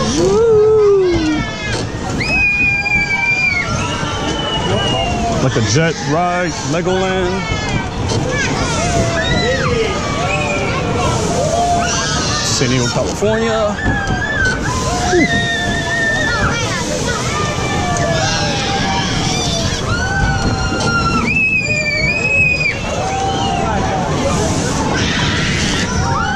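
Children and adults on a ride shriek and shout with excitement close by.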